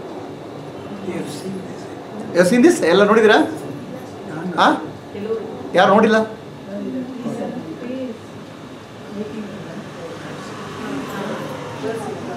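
A middle-aged man speaks calmly and close into a clip-on microphone.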